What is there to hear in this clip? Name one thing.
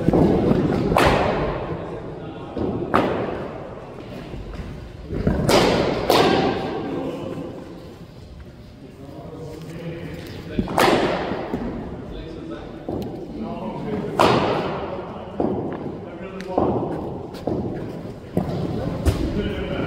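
A cricket bat strikes a ball with sharp cracks that ring inside a netted hall.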